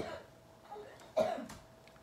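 A young woman gulps down a drink.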